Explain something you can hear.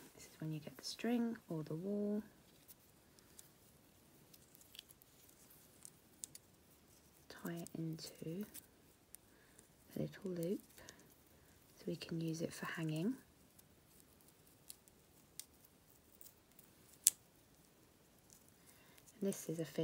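Small plastic gems tap softly onto wood.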